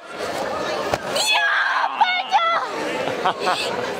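A young girl shouts with joy.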